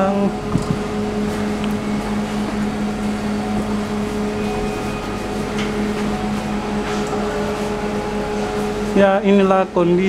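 An oven fan hums steadily.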